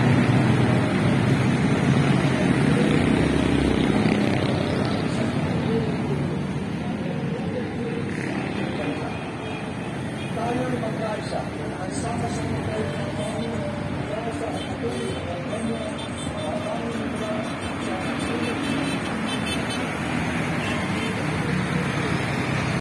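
Cars and motorbikes pass by on a road outdoors.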